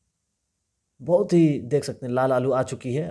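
A man talks loudly and with animation close by.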